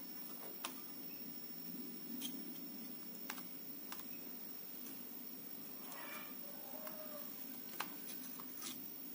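A soldering iron tip taps and scrapes lightly against a circuit board.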